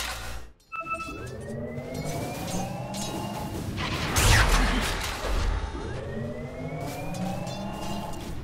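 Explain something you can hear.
A channelled spell hums with a rising tone.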